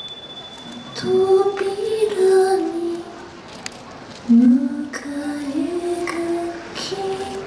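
Music plays over outdoor loudspeakers.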